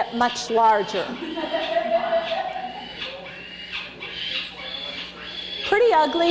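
A young falcon chick screeches loudly and shrilly.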